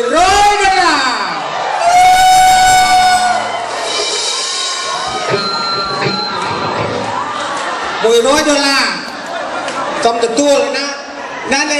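A man sings loudly into a microphone over loudspeakers.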